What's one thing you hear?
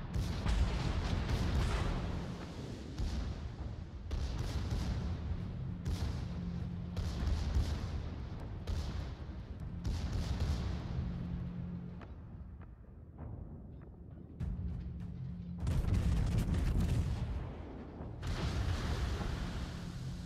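Shells splash and burst into the sea.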